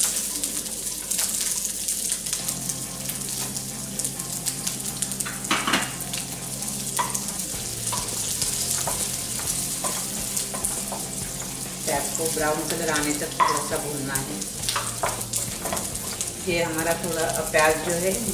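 Onions sizzle and crackle in hot oil.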